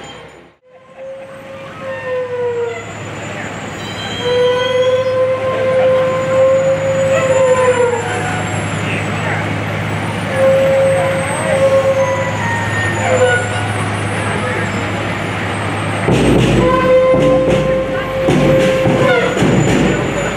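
A brass band plays on a passing truck.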